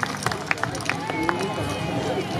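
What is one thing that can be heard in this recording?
Wooden hand clappers clack sharply.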